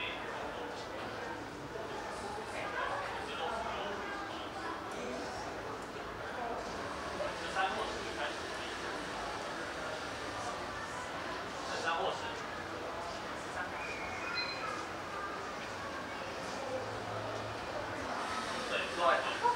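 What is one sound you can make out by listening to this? Many people chatter indistinctly in a room.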